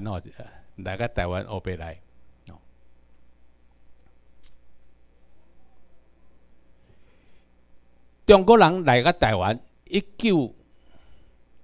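An elderly man speaks calmly through a microphone, pausing between phrases.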